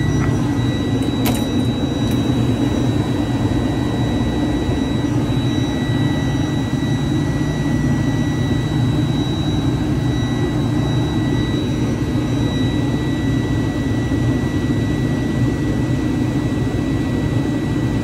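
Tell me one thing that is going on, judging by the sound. A diesel engine idles with a steady, loud rumble and a high whine.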